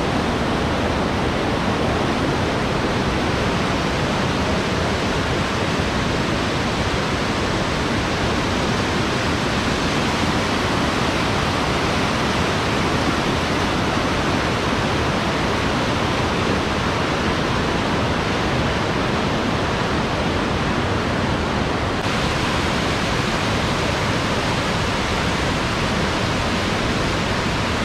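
A fast mountain river rushes loudly over rocks outdoors.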